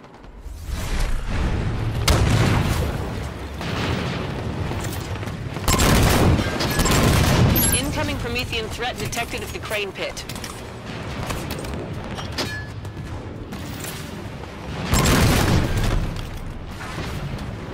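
Guns fire in bursts with sharp, booming shots.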